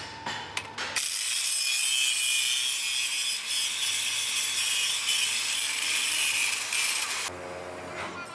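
An angle grinder cuts through steel with a loud, high screech.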